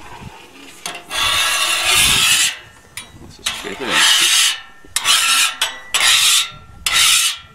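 A metal spatula scrapes across a griddle in short strokes.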